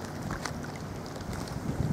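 River water flows past with a low, steady rush.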